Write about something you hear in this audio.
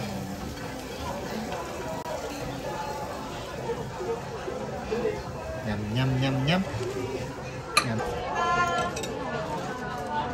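A baby babbles close by.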